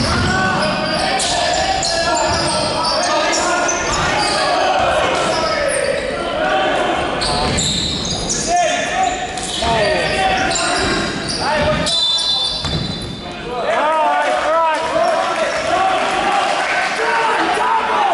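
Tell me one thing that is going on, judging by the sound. Players shout to each other in a large echoing hall.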